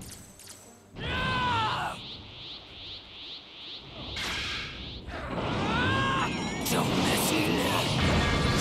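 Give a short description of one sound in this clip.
A powering-up energy aura roars and crackles.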